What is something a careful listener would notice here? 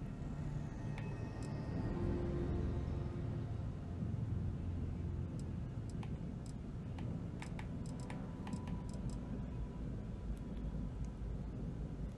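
Soft electronic clicks sound as menu items are selected.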